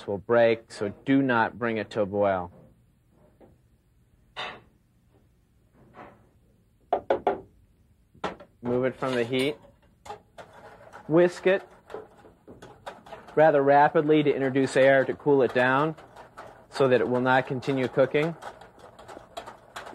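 A man speaks calmly and clearly into a close microphone.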